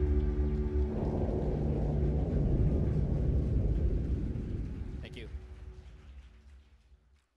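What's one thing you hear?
A large crowd applauds, then the applause slowly fades.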